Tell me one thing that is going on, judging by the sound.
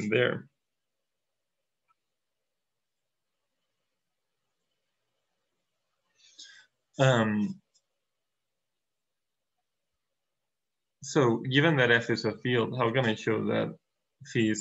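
A man speaks calmly through a microphone, explaining in short phrases with pauses.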